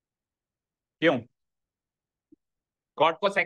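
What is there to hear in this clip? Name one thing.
A man speaks in short bursts into a microphone.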